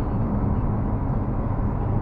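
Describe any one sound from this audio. An oncoming car passes by.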